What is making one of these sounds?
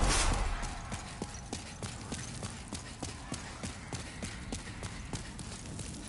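Armoured footsteps thud rapidly on stone.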